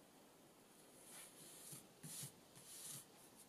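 Paper rustles and scrapes under hands.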